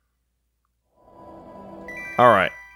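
Game music begins to play.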